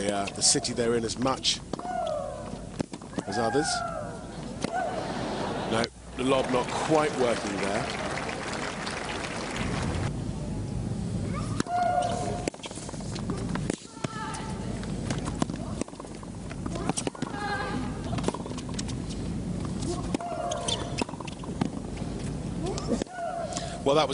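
Tennis balls are struck sharply with rackets in a rally.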